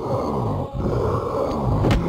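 A metal pipe swings and strikes flesh with a dull thud.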